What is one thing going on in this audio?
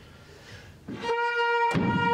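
A violin plays.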